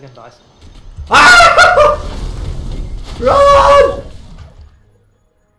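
A man shouts excitedly into a microphone.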